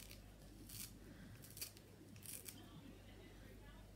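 Scissors snip through fresh herbs.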